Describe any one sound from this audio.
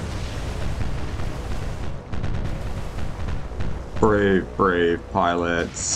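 Explosions boom and rumble over the sea.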